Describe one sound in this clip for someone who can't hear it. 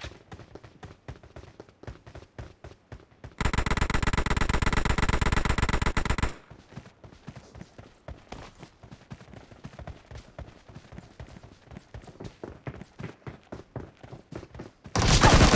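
Quick footsteps patter on hard ground in a steady running rhythm.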